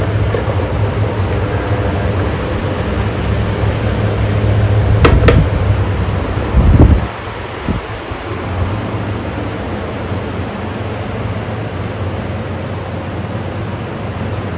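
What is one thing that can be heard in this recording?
An electric fan hums steadily.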